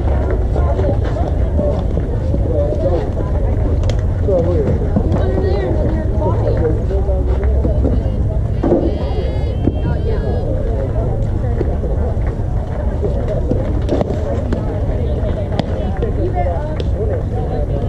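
Wind rumbles steadily across an open field outdoors.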